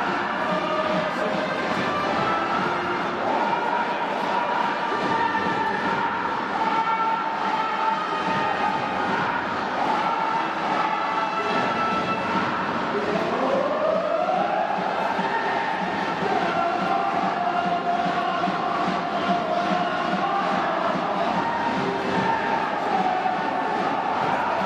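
Drums beat steadily.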